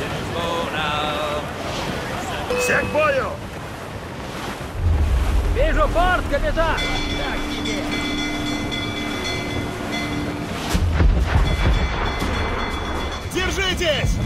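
Waves wash against a sailing ship's hull.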